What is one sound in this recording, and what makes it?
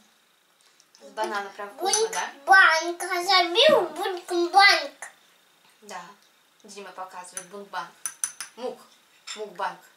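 A little girl talks with animation, close by.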